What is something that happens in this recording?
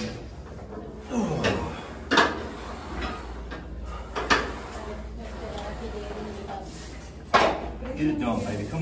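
A man breathes hard and grunts with effort.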